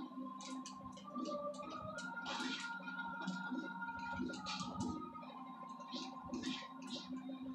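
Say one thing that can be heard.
Electronic video game music plays softly with steady tones.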